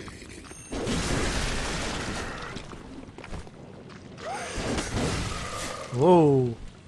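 A blade whooshes and slashes through the air.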